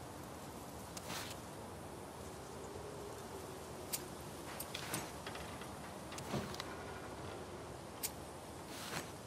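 A small card rustles and flicks in a hand.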